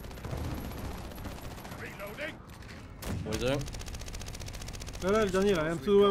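Gunfire crackles.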